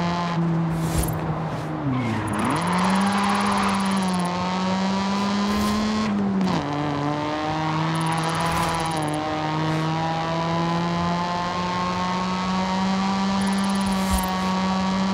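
A sports car engine revs high and shifts gears.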